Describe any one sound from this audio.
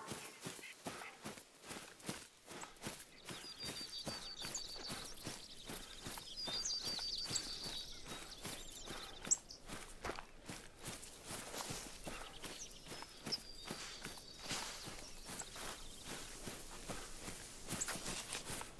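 Footsteps rustle steadily through dry grass and brush.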